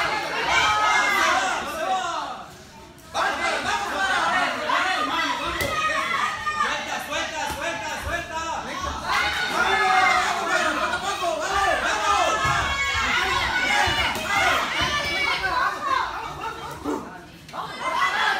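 Several men shout and cheer loudly close by, in an echoing hall.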